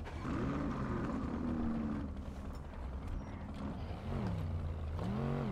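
A buggy's engine idles and revs up and down.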